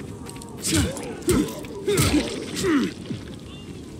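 Heavy blows land on a body with loud wet thuds.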